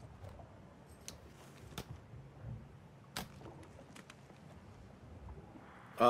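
A metal case snaps shut with a click.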